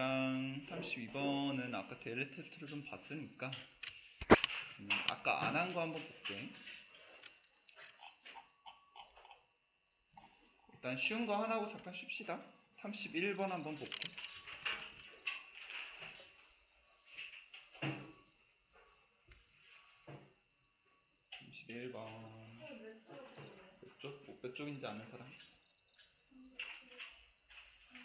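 A young man talks calmly into a close microphone, with pauses.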